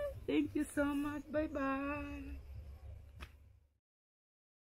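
A young woman cries out loudly and wails nearby.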